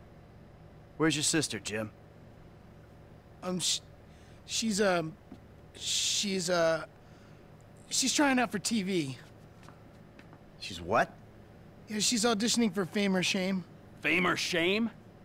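A young man speaks hesitantly and calmly.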